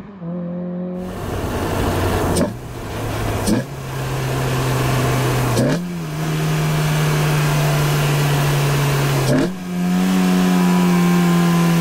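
A car engine roars from inside the car as it accelerates hard.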